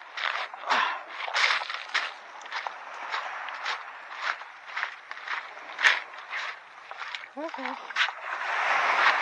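Footsteps crunch on loose pebbles.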